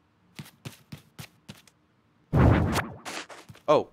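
Soft footsteps tap on a floor.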